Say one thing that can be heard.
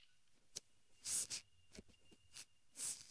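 A small snake hisses softly in short bursts.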